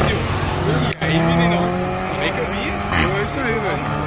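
A motorcycle engine roars loudly as it speeds past.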